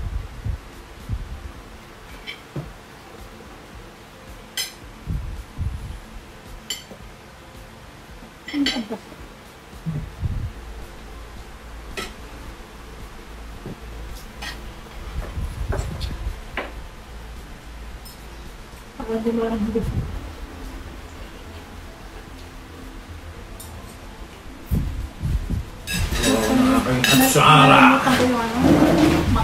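Cutlery clinks and scrapes against plates.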